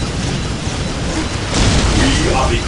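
A blast explodes with a loud boom.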